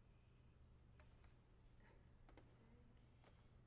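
A violin knocks and clicks softly as it is handled.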